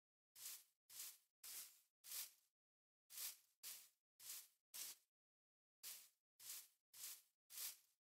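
Footsteps crunch in quick, even bursts.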